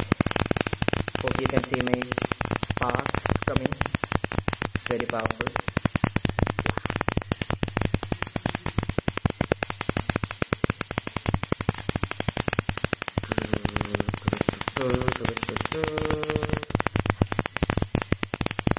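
A small tesla coil crackles and buzzes loudly and steadily.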